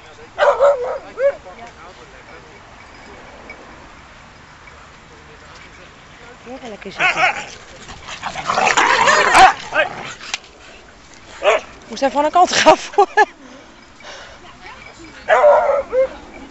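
Dogs bark and yelp excitedly nearby.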